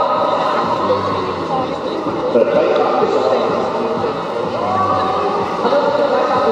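A crowd chatters and cheers loudly in a large echoing hall.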